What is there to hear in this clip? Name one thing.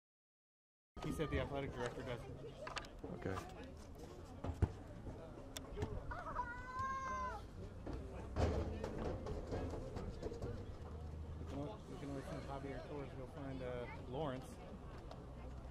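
A crowd of young men and spectators chatters and shouts outdoors.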